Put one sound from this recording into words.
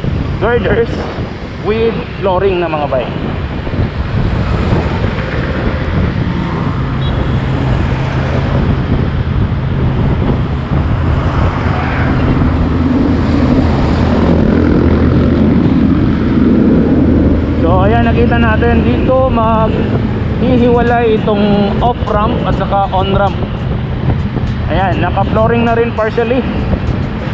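Wind rushes past the rider outdoors.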